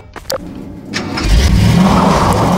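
A vehicle engine starts up and revs loudly.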